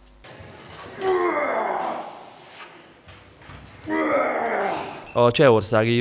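A man groans loudly with strain.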